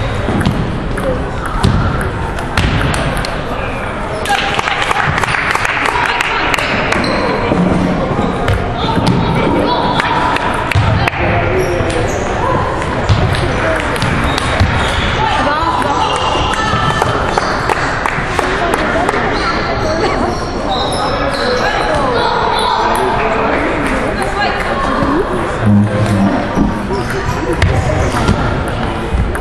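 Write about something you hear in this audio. A ping-pong ball clicks back and forth off paddles and a table in a large echoing hall.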